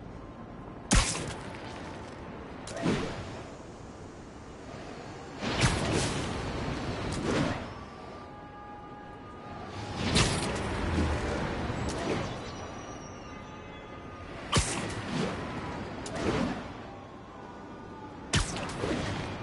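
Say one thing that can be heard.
Webs shoot out with sharp snapping whooshes.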